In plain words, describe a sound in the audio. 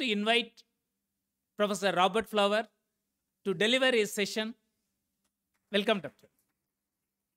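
A middle-aged man speaks calmly into a microphone in short phrases.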